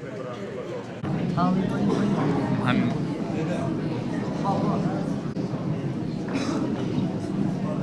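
An elderly man speaks calmly into a microphone in an echoing hall.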